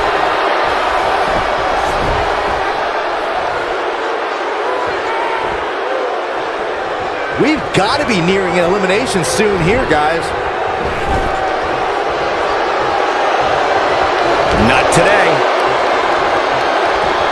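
A large crowd cheers and roars steadily in a big arena.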